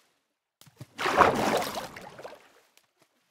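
Water splashes loudly, then bubbles softly.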